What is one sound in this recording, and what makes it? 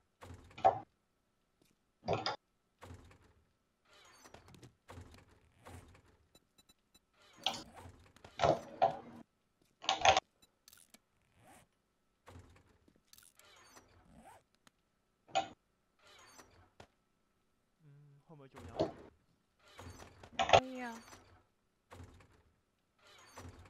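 Soft clicks sound as game menus open and close.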